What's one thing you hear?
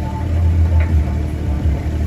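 Steam hisses from a fitting.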